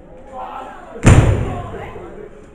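A wrestler slams an opponent onto the ring mat with a loud thud.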